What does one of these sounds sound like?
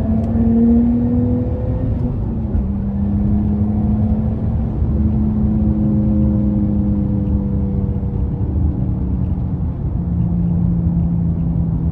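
Road noise rumbles low beneath the car.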